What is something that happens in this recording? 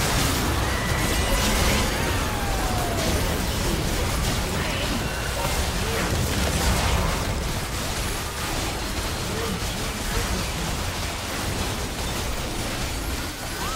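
Game spell effects whoosh and crackle in a fast battle.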